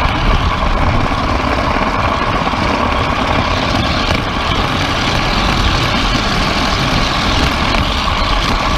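Small train wheels rumble and clatter steadily along metal rails close by.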